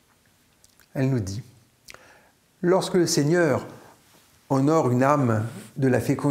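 An older man speaks calmly and close to a microphone, with pauses.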